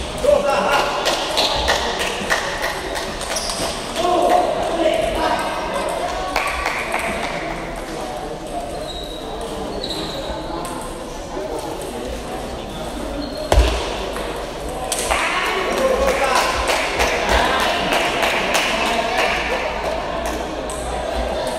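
Table tennis balls click against paddles and tables.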